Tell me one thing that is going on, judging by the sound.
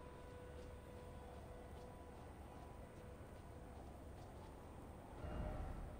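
Armoured footsteps crunch over stone and grass.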